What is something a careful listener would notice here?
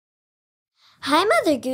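A young girl sings brightly close to the microphone.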